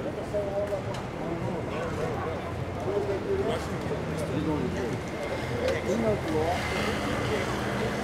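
Men talk nearby on the pavement.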